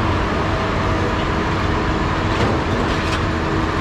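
A man tosses pieces of scrap metal that clatter onto a pile.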